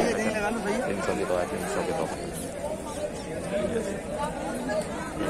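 Several people talk nearby in lively overlapping voices.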